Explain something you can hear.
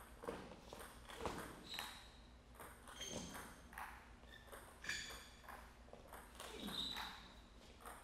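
A table tennis ball clicks back and forth off paddles and the table in a quick rally.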